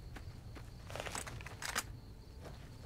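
A heavy gun clatters as it is raised.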